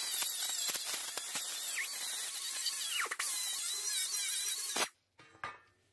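A small rotary polishing tool whirs and hisses against metal.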